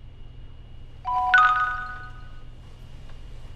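A phone chimes loudly with a short ringing tone.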